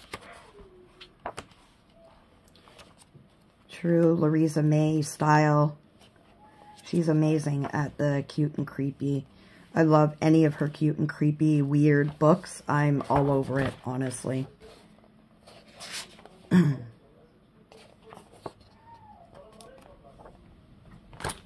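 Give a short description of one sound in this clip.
Paper pages rustle as they are turned one after another.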